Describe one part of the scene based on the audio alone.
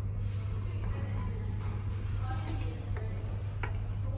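An elevator button clicks when pressed.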